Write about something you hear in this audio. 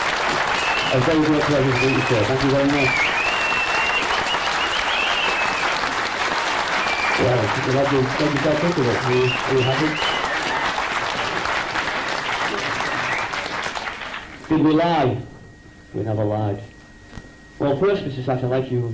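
A young man speaks animatedly into a microphone, heard through a loudspeaker.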